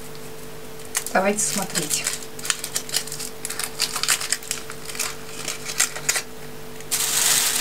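Foil wrapping crinkles and rustles as it is peeled off.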